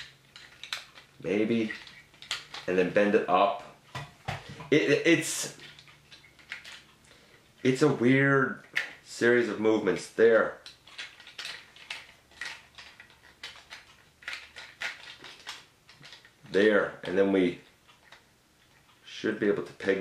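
Plastic parts of a toy click and rattle as they are handled.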